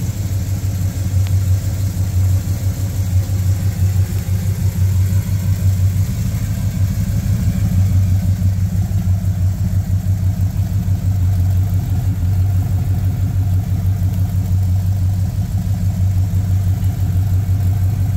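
A car engine idles with a deep, steady, throbbing rumble close by.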